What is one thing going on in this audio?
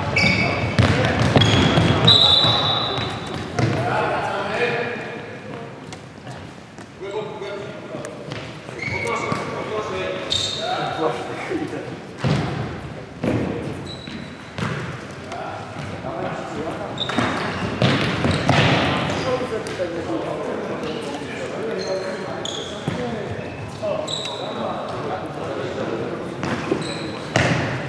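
A futsal ball is kicked and thuds on a wooden floor.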